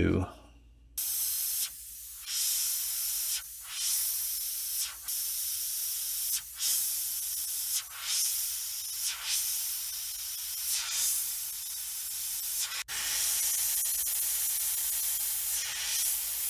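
An airbrush hisses steadily, spraying in short bursts.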